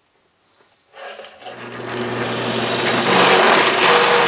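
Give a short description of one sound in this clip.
A drill press whirs and bores into wood.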